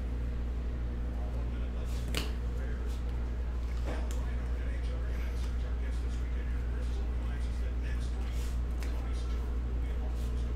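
Trading cards in plastic sleeves click and rustle as they are handled.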